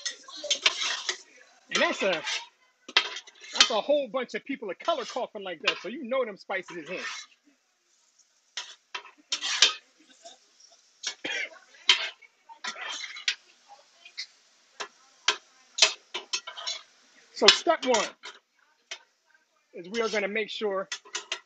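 A metal spatula scrapes and clacks against a hot griddle.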